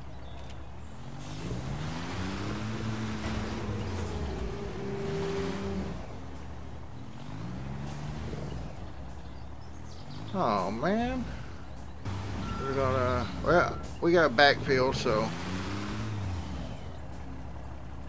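A diesel dump truck engine revs as it pulls away.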